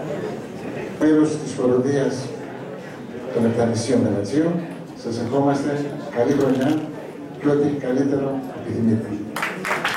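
A man speaks through a microphone and loudspeakers in a large hall.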